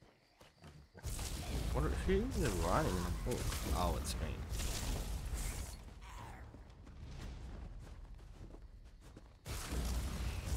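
A man talks into a headset microphone with animation.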